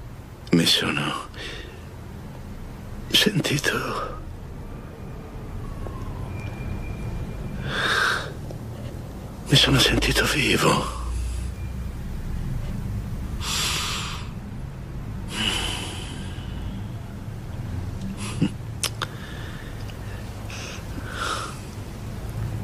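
A man speaks quietly and slowly, close by.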